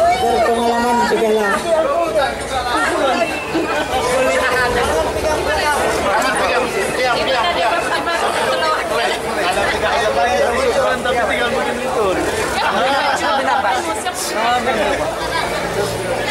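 A crowd of men and women chatters and laughs close by.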